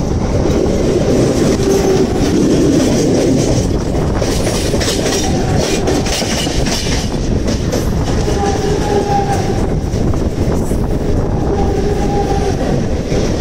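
Two trains rumble and clatter loudly past each other on the rails.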